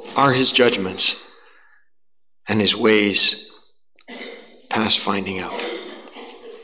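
An elderly man speaks slowly and deliberately through a microphone in a reverberant room.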